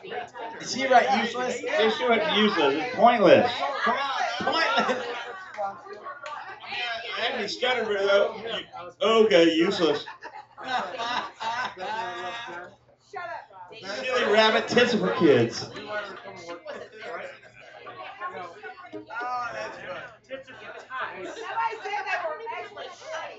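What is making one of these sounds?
A man talks into a microphone over a loudspeaker.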